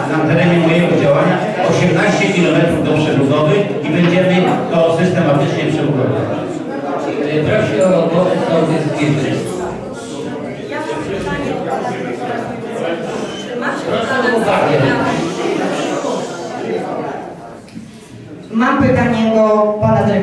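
Many elderly men and women chat at once.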